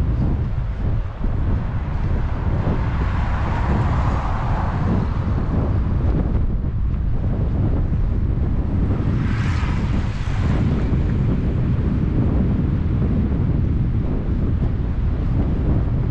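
Wind roars steadily against a microphone outdoors.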